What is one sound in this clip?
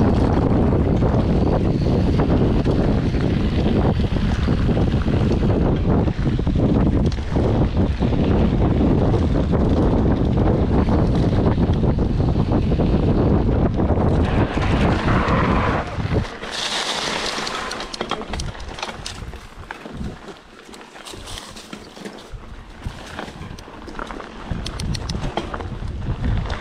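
Bicycle tyres crunch over a dirt and gravel trail.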